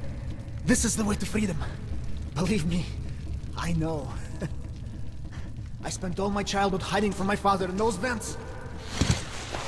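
A young man speaks quietly and hesitantly, close by.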